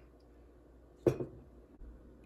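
A glass knocks on a table.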